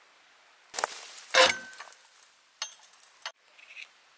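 A metal stove door creaks open.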